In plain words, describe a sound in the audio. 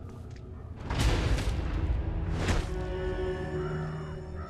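Clothing rustles and bodies thump in a close struggle.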